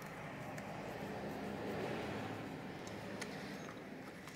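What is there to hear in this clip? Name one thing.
A small metal tool scrapes and clicks against a plastic casing.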